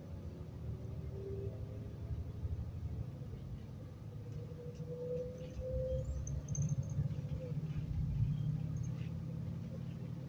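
A bus engine rumbles low and steady while the bus drives.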